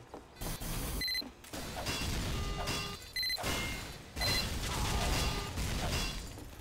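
A wrench clangs repeatedly against metal.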